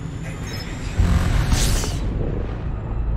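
A spaceship engine surges with a sudden loud whoosh.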